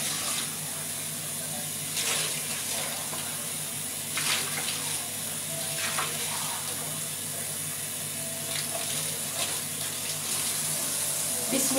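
Dishes clink in a sink.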